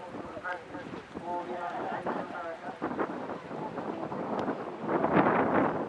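A horse canters with soft hoofbeats thudding on grass.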